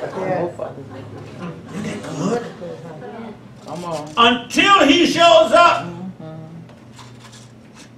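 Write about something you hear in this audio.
An older man preaches with animation into a microphone, his voice rising to shouts.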